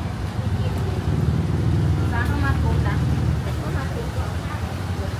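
A van's engine rumbles as it drives past close by.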